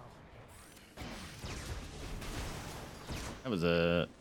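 Video game combat effects whoosh and crackle.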